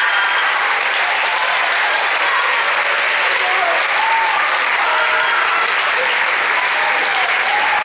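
A large choir sings in a hall.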